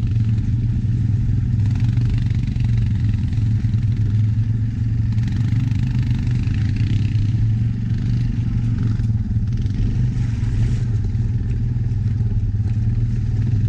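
An engine rumbles steadily close by as a quad bike drives along.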